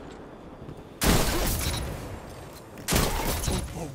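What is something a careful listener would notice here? Video game gunfire bursts out.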